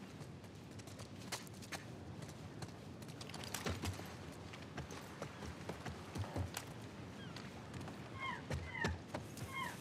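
Footsteps tread on hard ground at a steady walking pace.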